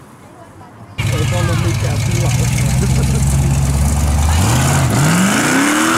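Car tyres squeal on the road.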